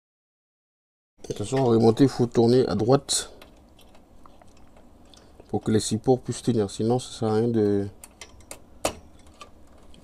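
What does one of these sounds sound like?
A plastic connector clicks into place.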